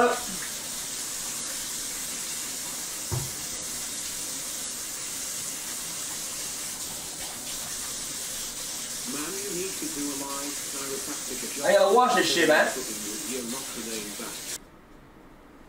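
Water runs steadily from a tap into a sink.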